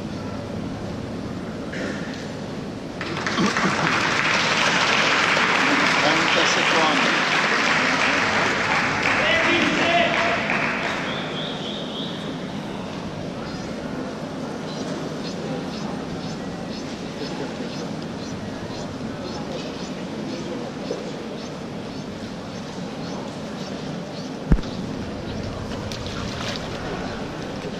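Voices murmur and echo around a large indoor pool hall.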